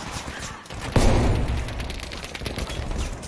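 A loud explosion booms nearby and rumbles away.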